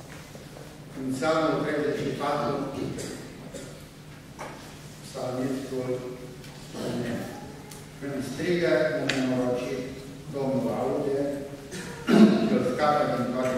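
A middle-aged man speaks calmly through a microphone in an echoing hall.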